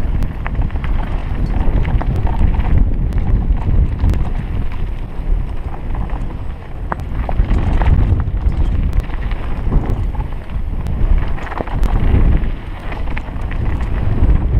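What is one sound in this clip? Bike tyres crunch and rattle over a loose gravel trail.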